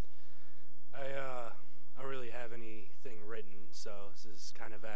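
A young man speaks into a microphone in a calm voice.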